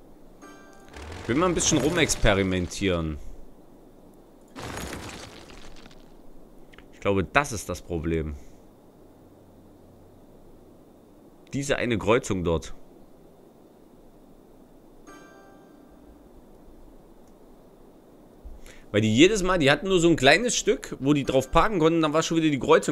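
A man talks into a close microphone in short bursts, with animation.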